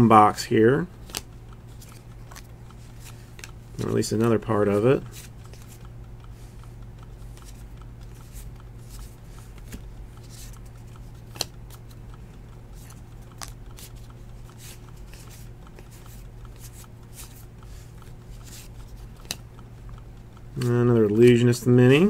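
Cards slide and flick against each other as they are shuffled through by hand.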